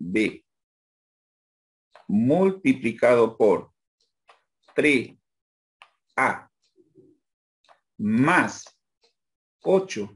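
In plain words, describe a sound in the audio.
A man speaks calmly in short phrases over an online call.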